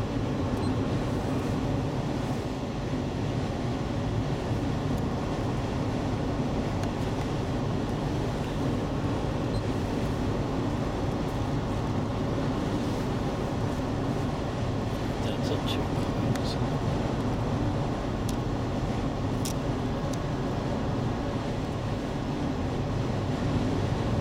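A car rumbles and hums steadily while driving, heard from inside.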